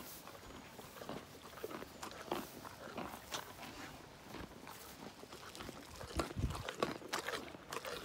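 A pony snuffles and sniffs close by.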